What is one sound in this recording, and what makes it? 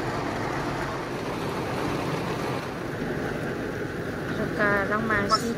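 Heavy rain drums steadily on a car's roof and windscreen.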